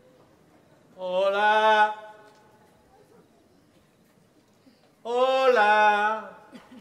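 A man sings out loudly in short bursts.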